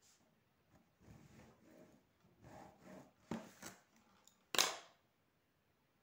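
A plastic ruler slides over paper and clacks down.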